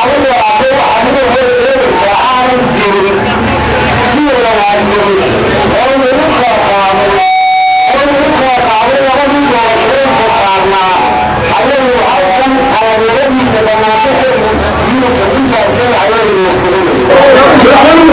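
A man speaks forcefully into a microphone through a loudspeaker outdoors.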